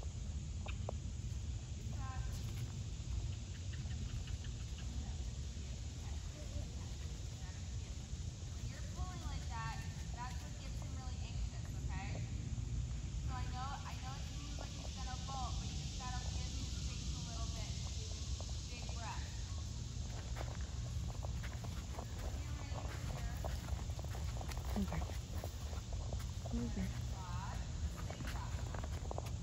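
A pony trots with soft hoofbeats on sand.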